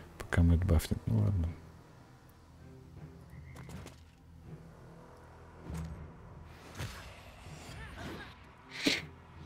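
Heavy blows land with deep thuds in a fight.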